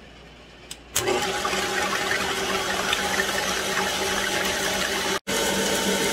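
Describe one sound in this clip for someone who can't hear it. A stand mixer whirs steadily as its whisk beats liquid in a metal bowl.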